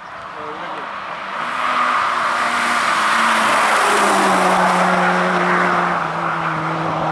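A rally car engine revs hard as the car approaches and passes close by.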